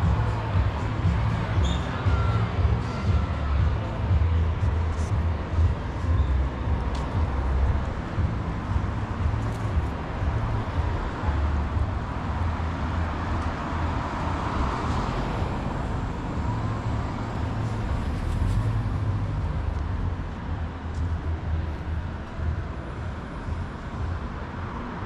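Wind blows steadily outdoors, rumbling close by.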